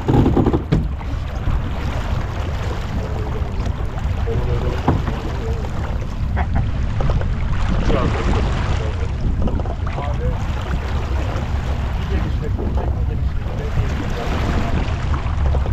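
Water splashes and rushes past a sailing boat's hull.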